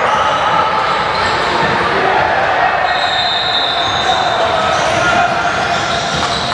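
Many voices chatter and call out in a large echoing gym.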